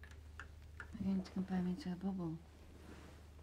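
A young woman speaks softly and playfully, close by.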